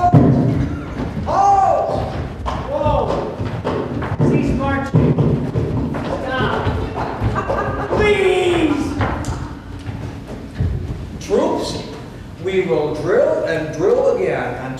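A group of men and women sings loudly in a large hall.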